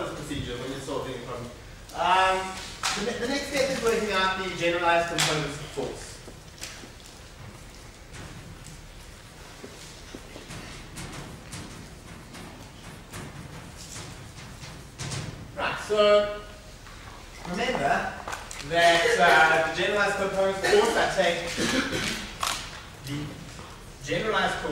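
A man lectures in a large echoing room.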